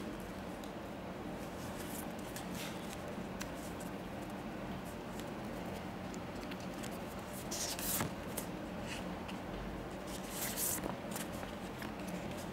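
Stiff paper cards rustle and slide against each other.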